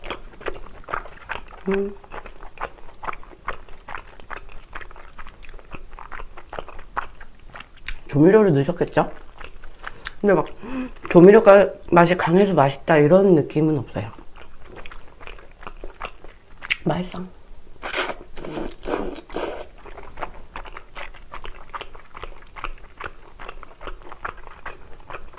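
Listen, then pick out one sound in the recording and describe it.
Chopsticks tap and clink against a paper bowl.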